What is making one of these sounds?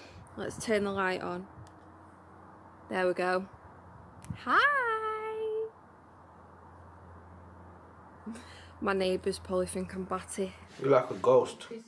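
A young woman speaks softly and close up.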